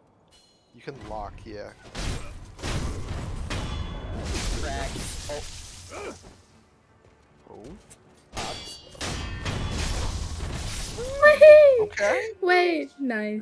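Swords clash and slash in a fight.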